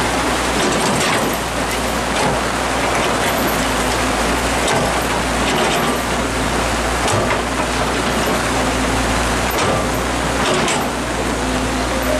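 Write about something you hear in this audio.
An excavator bucket scrapes and knocks against earth.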